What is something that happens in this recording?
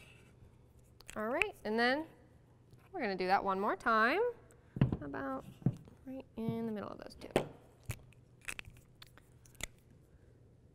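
A marker cap clicks off and on.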